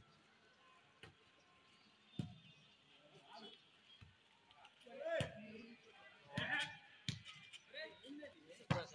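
Hands strike a volleyball with sharp slaps outdoors.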